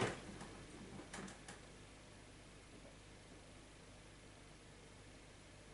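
A washing machine drum turns slowly with a low hum.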